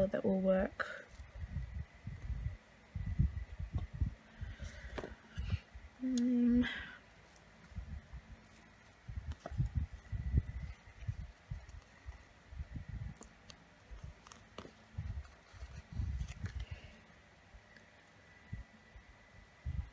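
Paper rustles and rubs close by.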